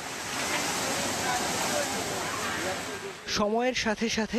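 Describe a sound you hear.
Floodwater rushes and churns along a bank, heard outdoors.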